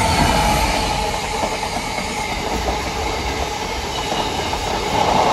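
A heavy freight train rumbles past close by, its wagons clattering on the rails.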